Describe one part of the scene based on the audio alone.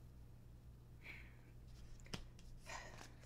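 Cards shuffle and tap on a table.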